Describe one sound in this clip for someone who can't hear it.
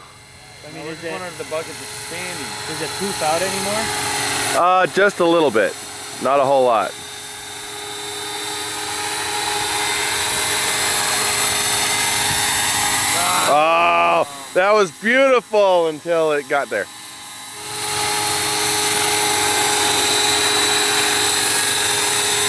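A helicopter's rotor beats loudly and steadily overhead.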